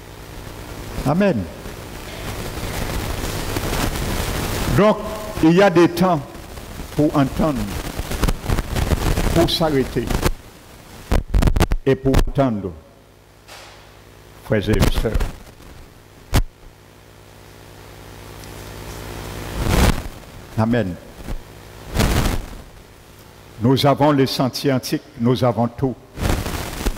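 A middle-aged man speaks calmly through a headset microphone and loudspeakers, in a room with some echo.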